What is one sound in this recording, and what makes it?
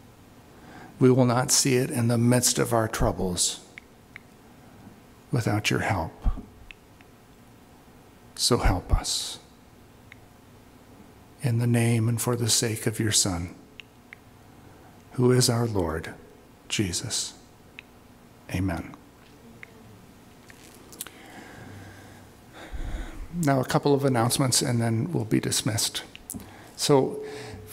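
A middle-aged man speaks slowly and earnestly into a microphone, with pauses between phrases.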